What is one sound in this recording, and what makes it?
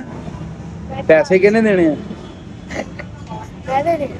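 A young boy laughs close by.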